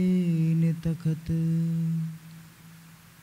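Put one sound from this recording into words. A young man sings a long held note into a microphone, then falls silent.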